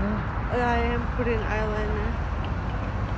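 A young woman speaks briefly and expressively close by.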